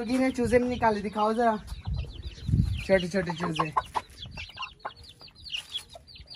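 Chickens cluck and chirp nearby.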